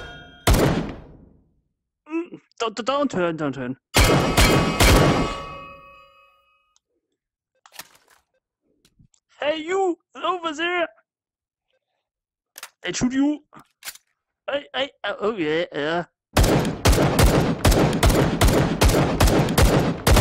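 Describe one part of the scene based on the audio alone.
A gun fires loud shots, ending in a long rapid burst.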